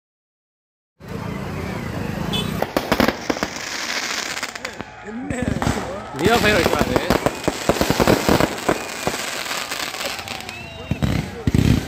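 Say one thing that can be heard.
Fireworks whistle as they shoot up, one after another.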